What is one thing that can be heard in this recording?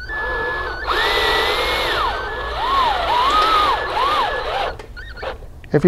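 A power drill whirs, driving a screw in with rising and falling speed.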